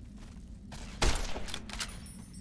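A gunshot cracks.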